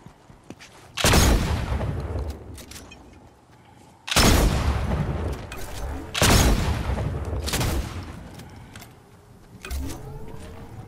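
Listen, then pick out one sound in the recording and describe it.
Loud gunshots boom and echo.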